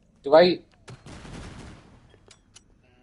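A gunshot fires.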